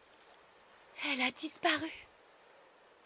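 A young woman speaks briefly and tensely.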